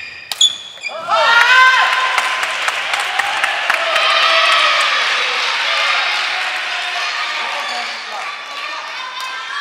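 Young men shout and cheer loudly after the rally.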